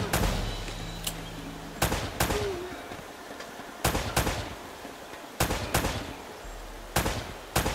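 Pistol shots ring out in pairs, with echoes fading after each one.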